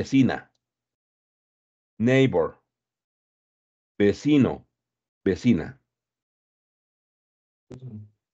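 A man speaks in short, clear phrases over an online call.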